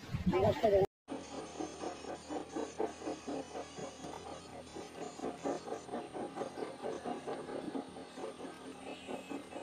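Music plays quietly from a phone.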